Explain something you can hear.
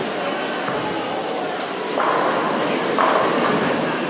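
A bowling ball rolls down a lane.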